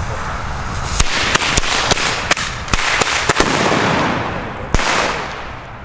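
A firework fountain sprays with a loud roaring whoosh.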